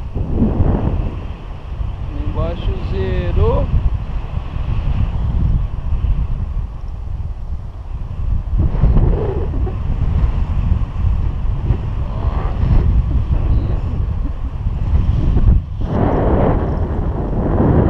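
Wind rushes loudly past a microphone in flight.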